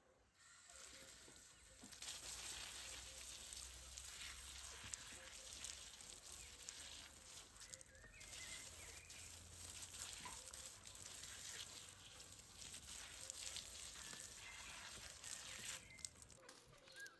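Water splashes onto leafy greens.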